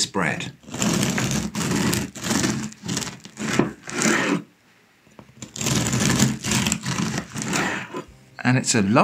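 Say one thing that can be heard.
A bread knife saws through a crusty loaf with rough rasping strokes.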